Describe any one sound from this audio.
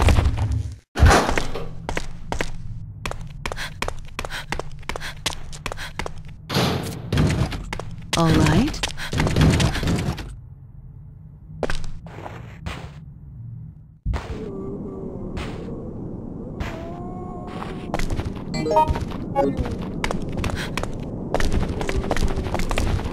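High heels tap on a hard floor in quick footsteps, echoing faintly.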